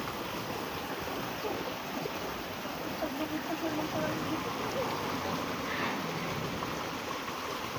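A shallow stream rushes and gurgles over rocks close by.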